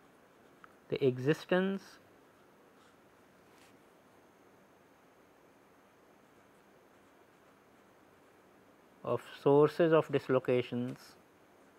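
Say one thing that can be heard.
A felt-tip marker squeaks softly as it writes on paper.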